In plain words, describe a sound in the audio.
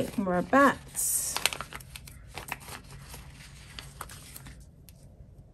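Paper rustles and crinkles as stickers are peeled from a sheet.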